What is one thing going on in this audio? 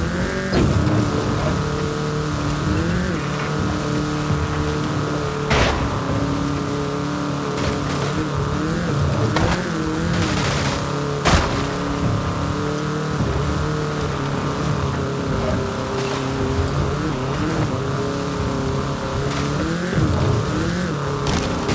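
Tyres rumble over rough grass and dirt.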